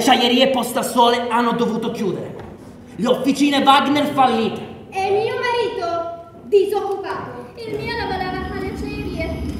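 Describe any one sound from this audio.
A man speaks loudly and dramatically on a stage, with some echo.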